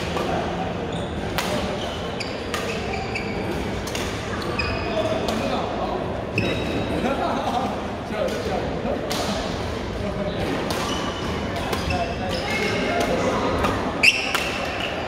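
Shoes squeak sharply on a hard court floor.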